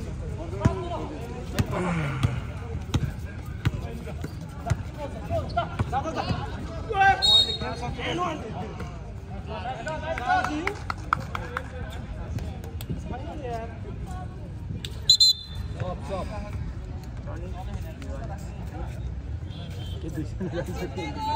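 A crowd of young men and women chatter and shout nearby outdoors.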